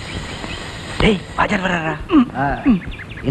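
Several young men talk loudly and with animation nearby.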